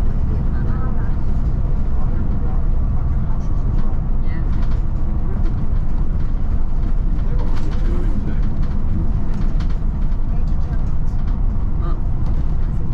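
A vehicle's engine hums steadily while driving along a road.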